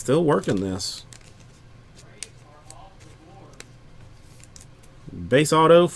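Trading cards slide and tick against each other in a man's hands.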